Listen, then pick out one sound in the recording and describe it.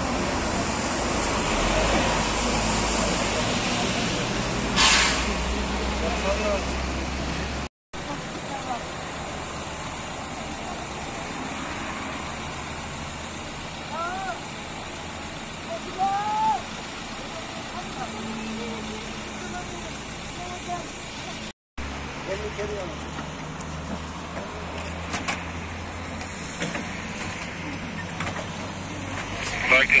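A vehicle engine idles with a low hum.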